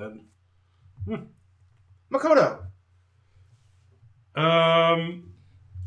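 Men talk with animation close to a microphone.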